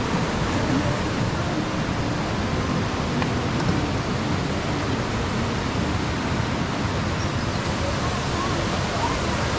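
Coaster cars rumble steadily along a metal track.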